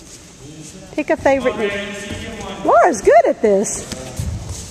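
A young woman calls out in a large echoing hall.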